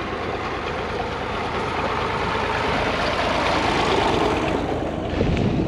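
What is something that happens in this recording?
A tractor engine chugs loudly close by as it passes.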